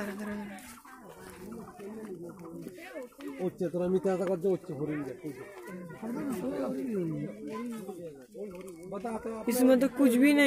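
Men and women chat close by.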